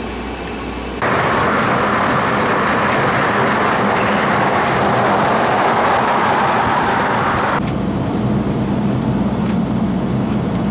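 Tyres and wind roar steadily as a vehicle drives along a highway.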